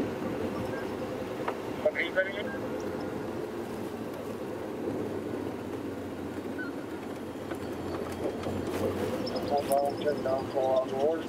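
A vehicle engine hums steadily while driving over a dirt track.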